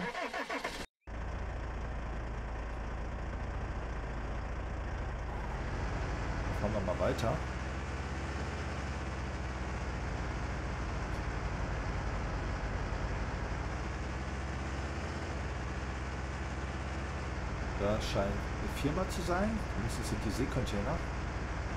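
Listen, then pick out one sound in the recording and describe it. A truck engine rumbles steadily as the truck drives along.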